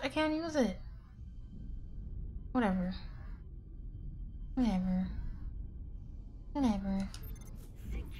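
A young woman's voice makes short, falling sung calls close to a microphone, with pauses between them.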